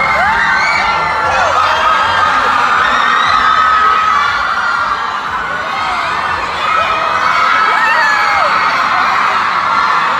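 A crowd of young women screams and shrieks excitedly nearby.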